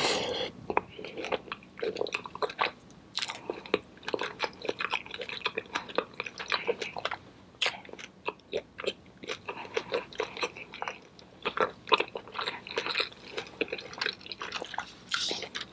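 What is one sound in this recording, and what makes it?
A young woman chews food noisily and smacks her lips close to a microphone.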